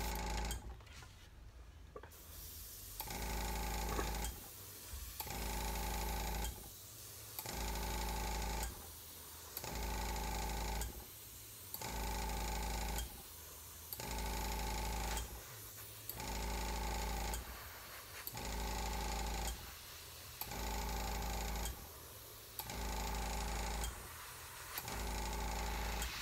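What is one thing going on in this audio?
An airbrush hisses in short, regular bursts.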